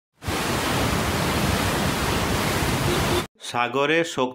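Floodwater rushes and roars loudly.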